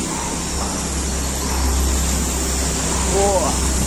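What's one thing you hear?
A waterfall splashes steadily down a rock face.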